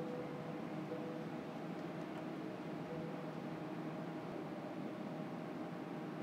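A quiet crowd murmurs in a large hall.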